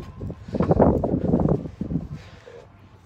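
A car door clicks open.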